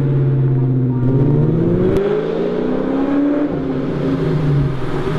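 A car engine revs up, rising in pitch between gear shifts.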